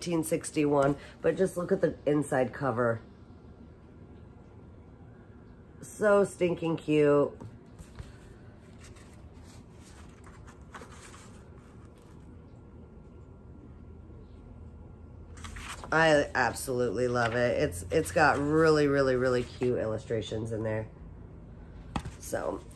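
A woman reads aloud calmly, close by.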